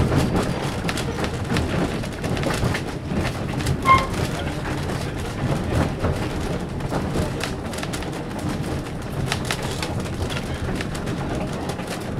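A vehicle rumbles and rattles steadily as it rolls along.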